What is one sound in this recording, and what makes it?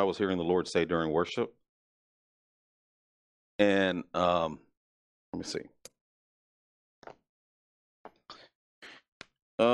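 A middle-aged man speaks calmly into a headset microphone, with pauses.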